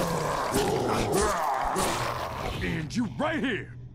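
Heavy blows land on a body with wet, meaty thuds.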